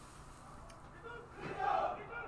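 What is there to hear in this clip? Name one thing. A group of young men cheer and yell.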